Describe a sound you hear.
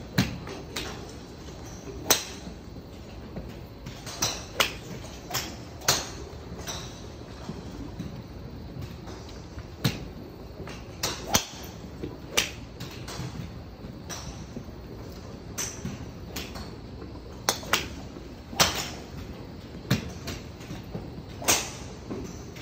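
Golf balls are struck with sharp cracks, echoing in a large space.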